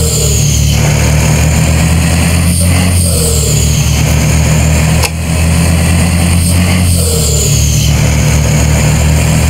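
A truck engine drones steadily at a low pitch.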